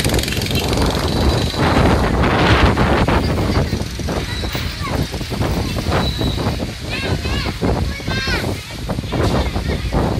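A crowd of people chatters in the distance.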